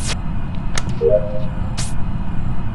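A soft electronic chime rings as a task completes.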